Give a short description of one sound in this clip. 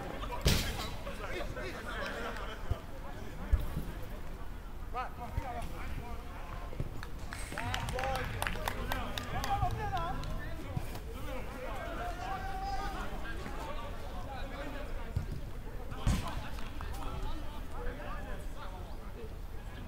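Men shout to one another some way off outdoors.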